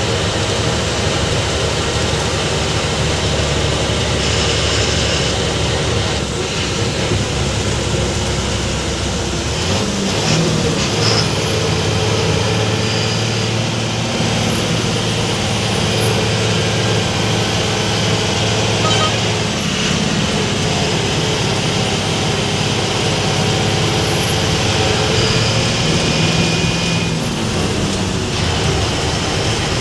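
Tyres roll and hum on the road.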